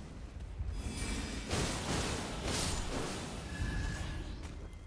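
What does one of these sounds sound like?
A sword swings with a sharp whoosh.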